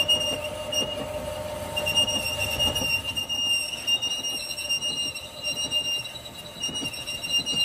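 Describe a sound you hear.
A metal lathe hums steadily as it spins.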